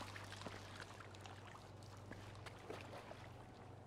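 Water splashes as a body drops into a pool.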